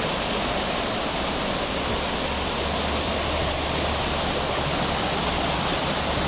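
A shallow stream rushes steadily over rocks, close by.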